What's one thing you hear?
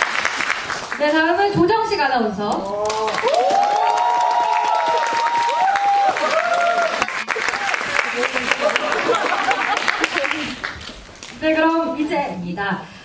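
Young women in the audience scream with excitement.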